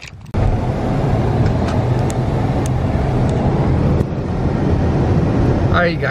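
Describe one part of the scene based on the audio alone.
A car hums and rumbles steadily, heard from inside as it drives.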